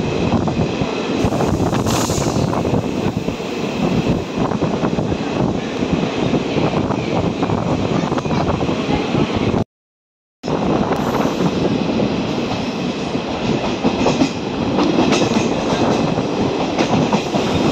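A train rumbles and clatters along the tracks.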